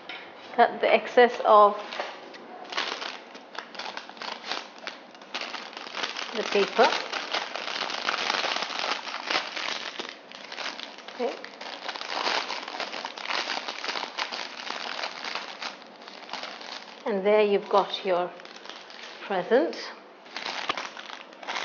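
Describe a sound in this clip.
Cellophane crinkles and rustles as hands wrap it.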